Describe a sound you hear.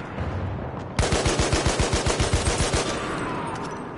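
A machine gun fires a rapid burst of shots.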